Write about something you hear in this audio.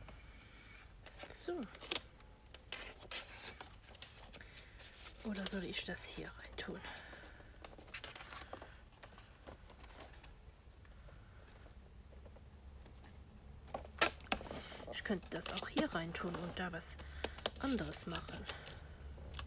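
Paper rustles softly as it is handled and folded.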